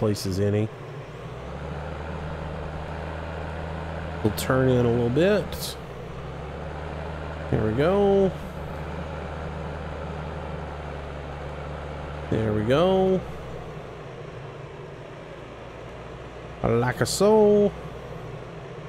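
A tractor engine hums steadily as it drives slowly.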